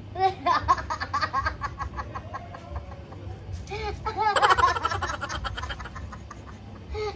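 A man laughs loudly nearby.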